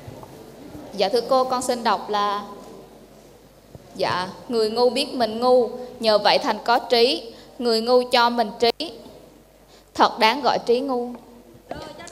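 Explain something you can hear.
A woman speaks into a microphone over a loudspeaker in a large echoing hall.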